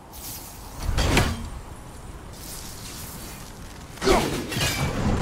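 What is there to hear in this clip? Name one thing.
An axe strikes with a heavy thud.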